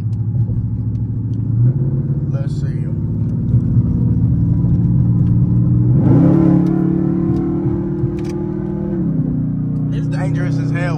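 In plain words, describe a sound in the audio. A car engine hums steadily and shifts pitch as the car changes gear.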